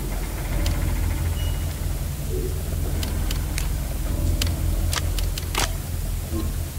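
Menu selections click sharply.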